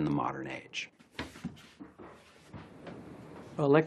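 A dryer door swings open with a clunk.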